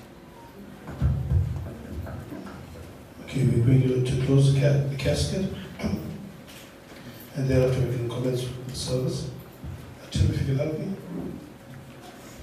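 A man speaks into a microphone in bursts, heard through loudspeakers in an echoing hall.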